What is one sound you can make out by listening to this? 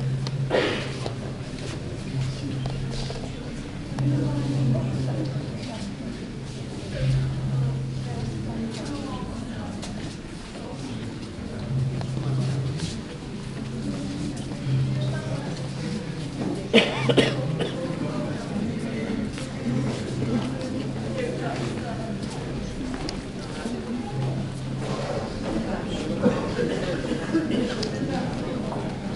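Men and women murmur quietly in the background.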